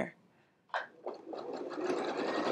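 A sewing machine whirs as it stitches.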